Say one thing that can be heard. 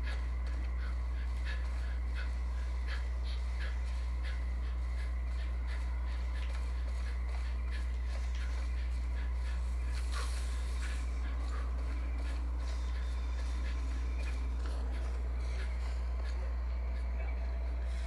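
Footsteps rustle through tall grass at a steady walking pace.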